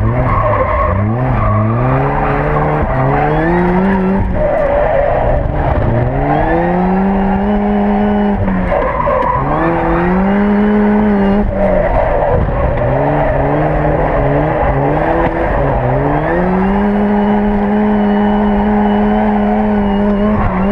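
A car engine revs hard, rising and falling in pitch again and again.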